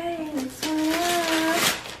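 Wrapping paper rustles and tears.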